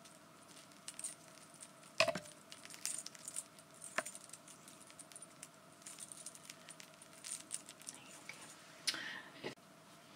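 Hands rustle and click a small object close by.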